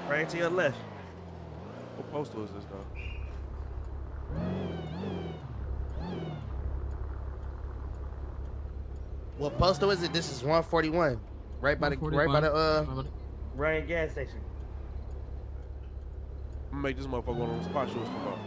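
A car engine hums and revs in a video game.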